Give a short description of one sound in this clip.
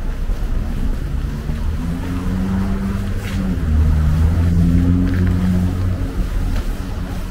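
An engine drones steadily for a few seconds.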